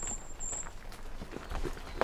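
Leaves rustle as a hand brushes through a branch.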